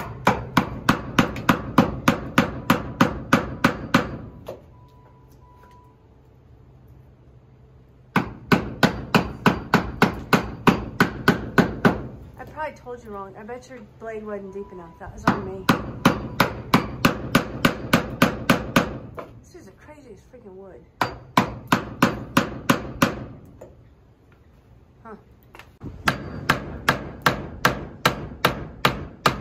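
A hammer drives a nail into wood with quick, rapid blows in repeated bursts.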